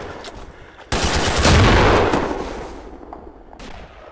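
A loud gunshot cracks and booms.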